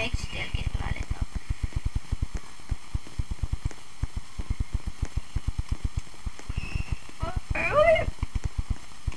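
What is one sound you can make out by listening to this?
A young boy speaks briefly close to a microphone.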